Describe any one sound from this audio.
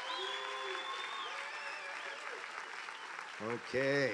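People clap and applaud.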